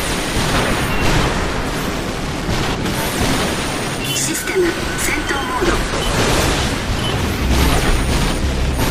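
A jet booster roars steadily.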